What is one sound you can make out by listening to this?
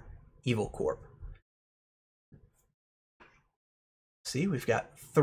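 A man speaks calmly and closely into a microphone, with pauses.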